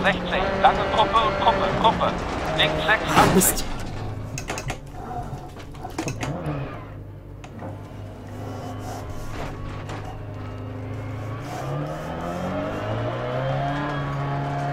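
A rally car engine revs and whines as the car drives over gravel.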